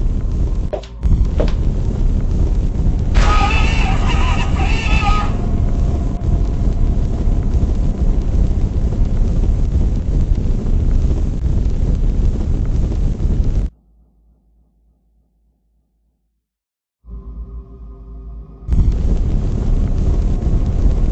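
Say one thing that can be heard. A low fire roars steadily.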